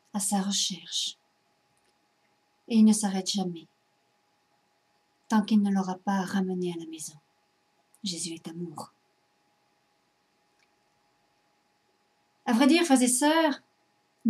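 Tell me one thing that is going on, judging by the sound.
A middle-aged woman speaks calmly and close to a microphone, in short phrases with pauses.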